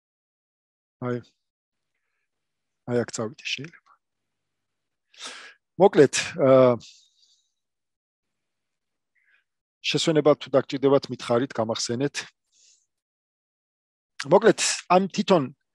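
A man talks calmly in short phrases through a close microphone, as on an online call.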